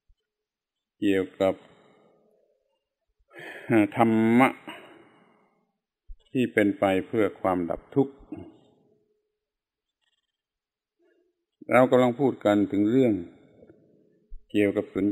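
An elderly man speaks calmly in short phrases with pauses.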